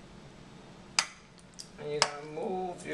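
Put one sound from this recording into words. A metal fork clinks against a glass dish.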